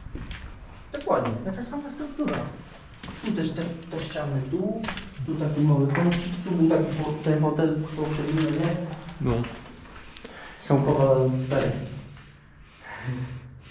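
A man speaks nearby in a low, calm voice.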